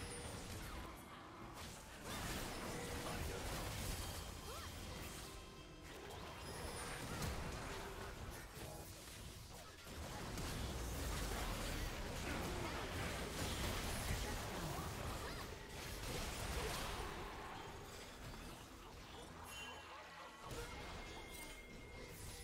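Magic spells whoosh and blast in a busy fantasy battle.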